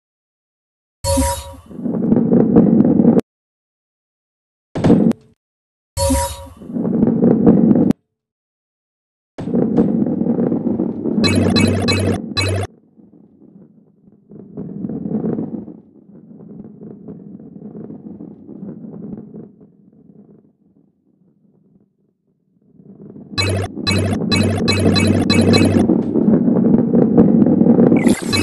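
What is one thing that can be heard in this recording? A heavy ball rumbles as it rolls along a wooden track.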